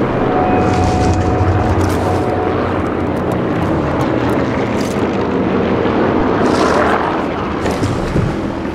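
Leafy bushes rustle as someone pushes through them.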